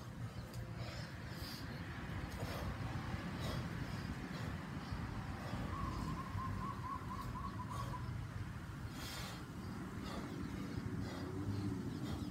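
A man breathes out sharply with each swing.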